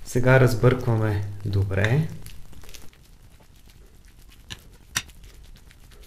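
A fork clinks and scrapes against a plate while stirring food.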